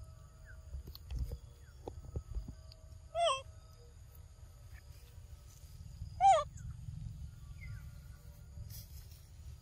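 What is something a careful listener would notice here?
A monkey crunches and chews fruit close by.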